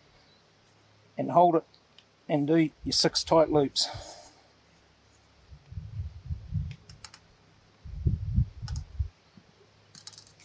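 Wire scrapes and clicks as it is twisted by hand.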